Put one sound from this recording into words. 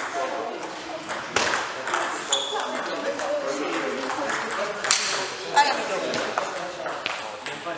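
Rubber soles squeak on the floor as players move.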